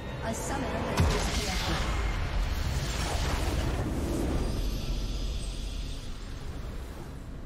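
A triumphant video game victory fanfare plays.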